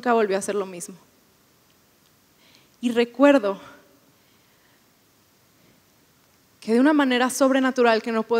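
A young woman speaks calmly into a microphone, in bursts with pauses.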